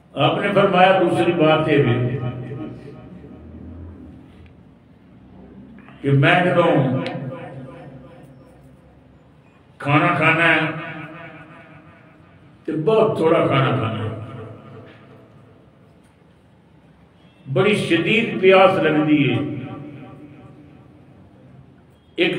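An elderly man recites in a loud, drawn-out chanting voice through a microphone, in phrases with short pauses between them.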